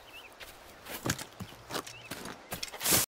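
Dry palm fronds rustle as someone steps through them.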